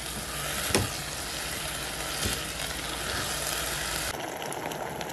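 A spatula scrapes and stirs sizzling rice in a pot.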